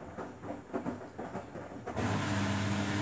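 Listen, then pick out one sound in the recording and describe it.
A front-loading washing machine drum tumbles laundry.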